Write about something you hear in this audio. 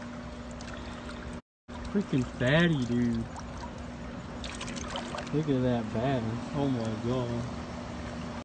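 Shallow water trickles gently over rocks.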